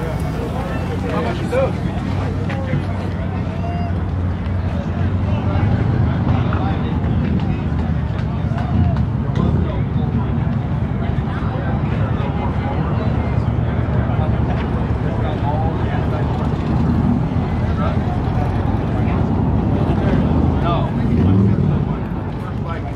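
Motorcycle engines rumble and idle nearby.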